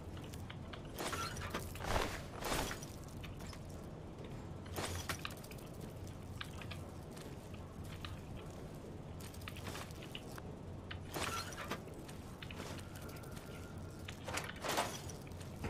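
Short clicks sound as items are picked up.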